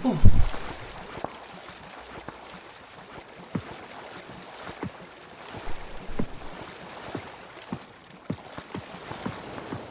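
Water splashes in rhythmic strokes as someone swims.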